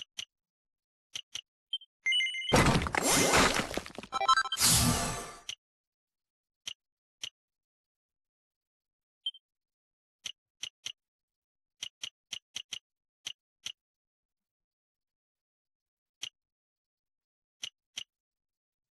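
Short soft menu blips tick as a selection moves.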